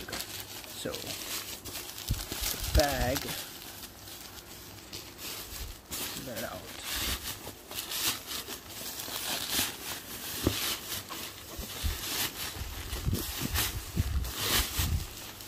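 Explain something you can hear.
Plastic sheeting crackles as hands pull it off a bundle.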